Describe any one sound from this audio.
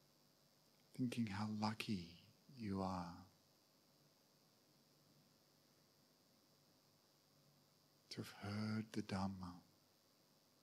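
A man speaks calmly into a microphone in short phrases with long pauses.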